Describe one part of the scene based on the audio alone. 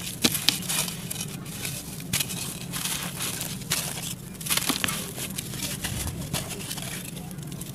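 Hands crumble dry clay, which crackles and crunches.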